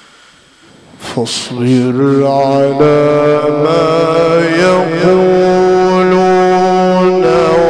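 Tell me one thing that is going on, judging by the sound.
A man chants loudly in a long, wavering melodic voice through a microphone and loudspeakers.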